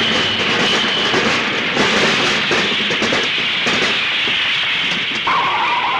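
A truck crashes onto its side with a heavy metal crunch.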